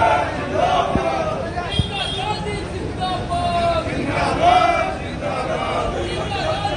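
A crowd of men and women talk and call out over each other outdoors.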